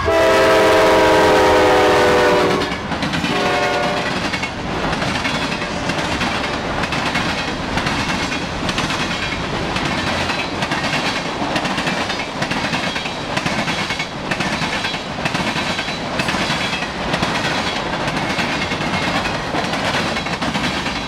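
Train wheels clatter rhythmically over rail joints as freight cars rush past.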